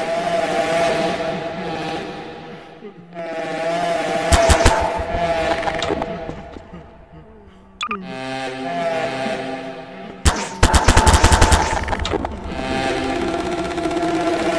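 A tool gun zaps in sharp bursts.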